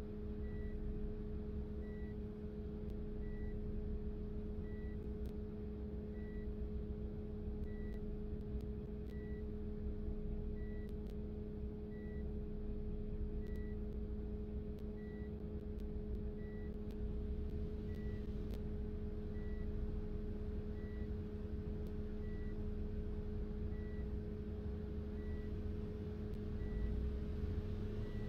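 A bus engine hums steadily at low speed.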